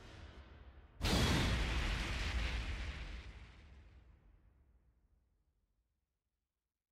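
A deep impact booms and rumbles away.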